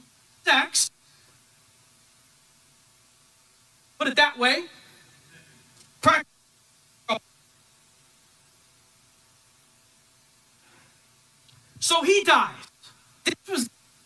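A man speaks with animation into a microphone, in short bursts with long pauses.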